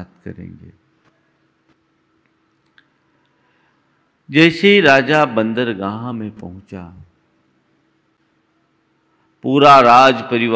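A middle-aged man speaks slowly and solemnly into a microphone, with long pauses.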